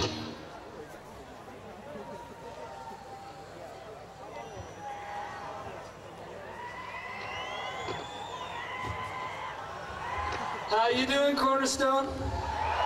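A large outdoor crowd murmurs and cheers.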